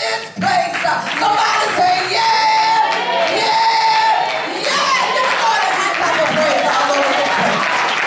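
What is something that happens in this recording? A man preaches with passion through a microphone in a large echoing hall.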